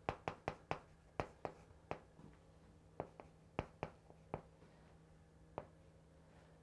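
Chalk taps and scratches on a board.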